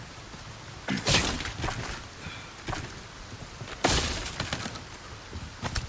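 Wooden planks smash and splinter.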